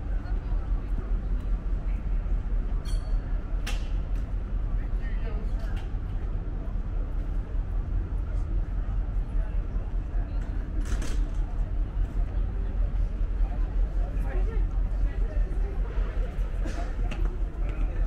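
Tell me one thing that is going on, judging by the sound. Footsteps tap on pavement as people walk past.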